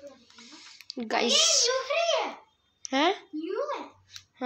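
A child talks in a high voice close by.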